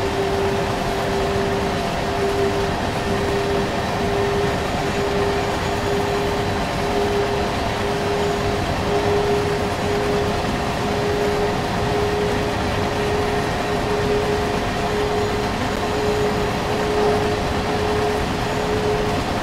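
An electric locomotive motor hums with a steady whine.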